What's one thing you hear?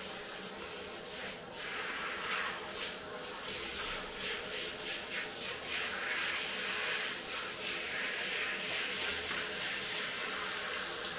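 A shower sprays water with a steady hiss onto a dog and a tiled floor.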